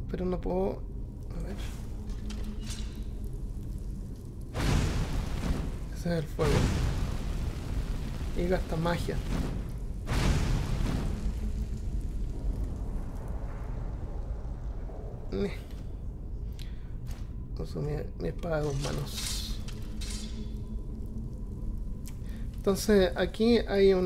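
A man talks with animation into a close microphone, on and off.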